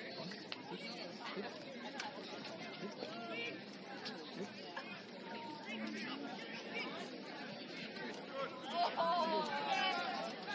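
A crowd of young women and girls chatters and calls out at a distance outdoors.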